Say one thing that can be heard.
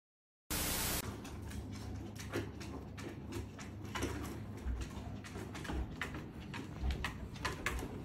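Dog paws patter on a hard floor.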